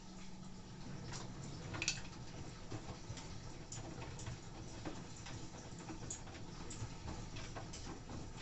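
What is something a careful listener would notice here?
Laundry tumbles and thumps inside a washing machine drum.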